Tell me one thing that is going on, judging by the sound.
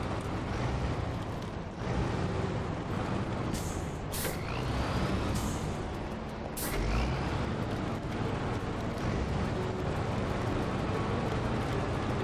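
Snow crunches under a truck's tyres.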